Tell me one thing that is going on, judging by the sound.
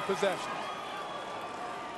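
A young man shouts.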